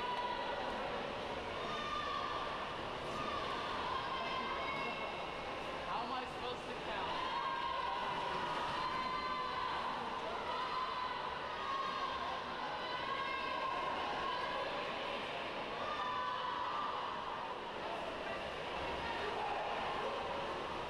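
Swimmers splash and churn through the water.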